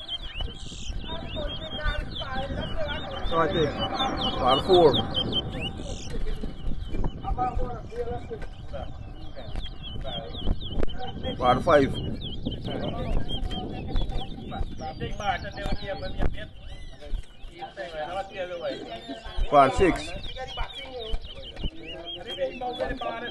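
Caged songbirds chirp and trill rapidly.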